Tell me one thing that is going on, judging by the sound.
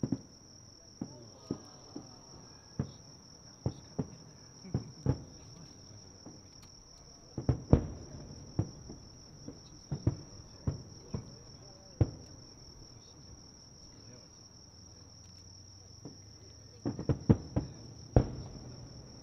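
Fireworks burst with sharp booms that echo over a distance.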